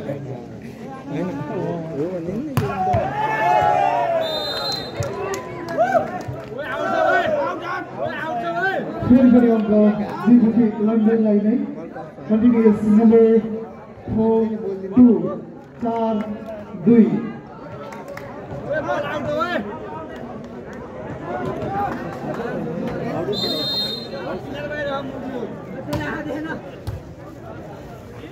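A large crowd outdoors cheers and shouts.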